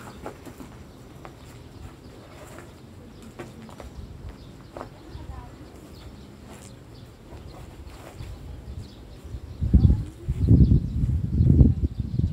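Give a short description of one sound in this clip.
Clothing rustles and brushes close to the microphone.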